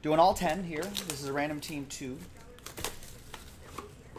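Plastic wrap crinkles as it is torn off a box.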